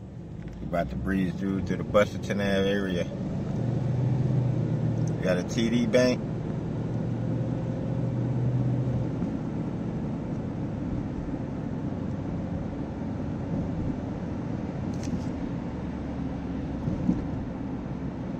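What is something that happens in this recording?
A car's engine hums steadily as it drives along a road.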